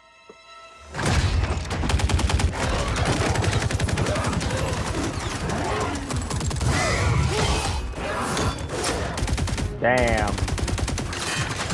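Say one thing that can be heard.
Automatic rifles fire in rapid, heavy bursts.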